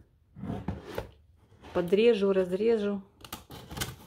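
A utility knife slices through packing tape on a cardboard box.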